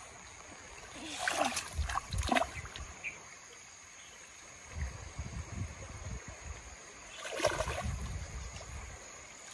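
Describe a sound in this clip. Water splashes and sloshes in a shallow pond.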